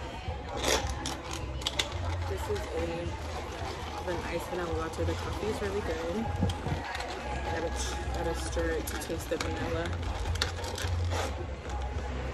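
A straw scrapes and rattles against a plastic lid and ice.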